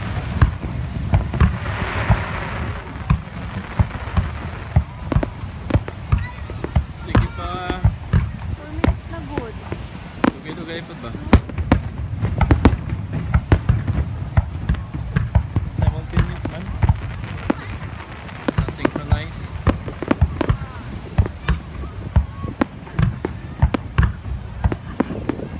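Fireworks bang and crackle in rapid bursts.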